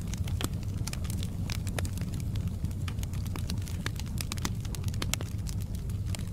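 Logs crackle and pop in a fire.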